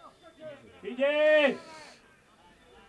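A man shouts loudly.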